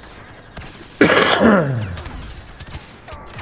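A grenade explodes with a booming blast.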